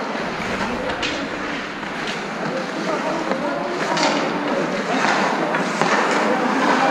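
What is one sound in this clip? A hockey stick strikes a puck with a sharp slap.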